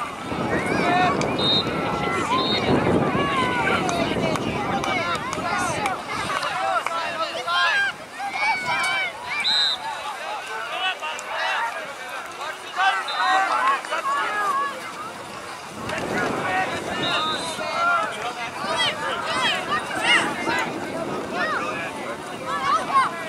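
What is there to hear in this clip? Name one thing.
Adults cheer and call out from the sidelines outdoors.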